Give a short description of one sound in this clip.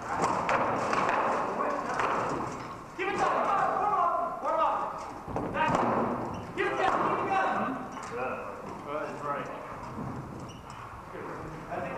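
Wooden weapons clack and knock against shields in a melee.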